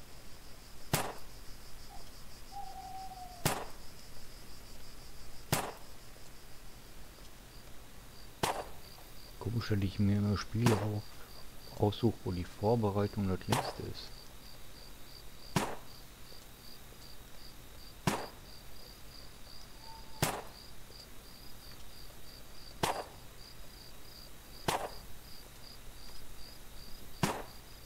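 A metal tool clicks sharply at short, even intervals.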